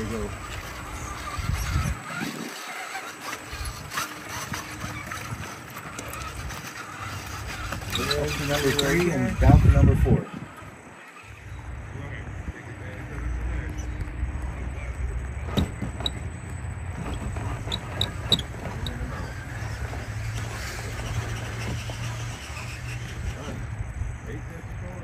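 A small electric motor whirs as a toy truck crawls along.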